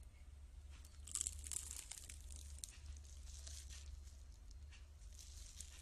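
A young woman bites and chews crunchy fried food close up.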